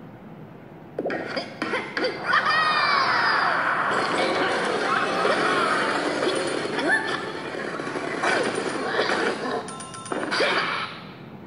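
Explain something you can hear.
Cartoon sound effects whoosh and chime from a small phone speaker.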